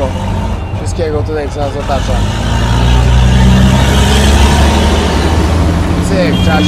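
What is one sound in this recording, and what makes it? An auto-rickshaw engine rumbles and rattles steadily, growing louder.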